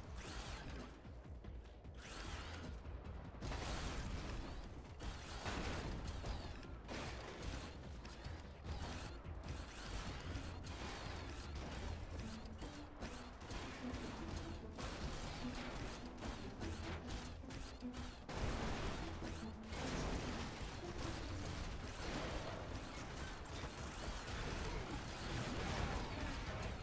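A giant robot stomps heavily with loud mechanical footsteps.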